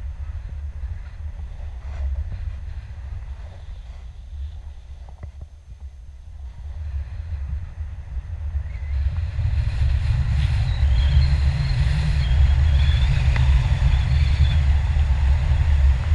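Wind rushes and buffets close by, outdoors in the open air, growing louder partway through.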